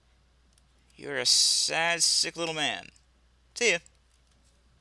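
A man speaks in a dry, sarcastic tone, close and clear.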